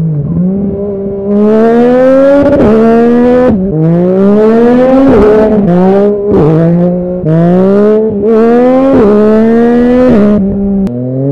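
A motorcycle engine revs hard, its pitch climbing and dropping as it shifts through gears.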